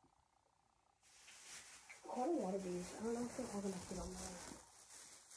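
A plastic bag rustles close by.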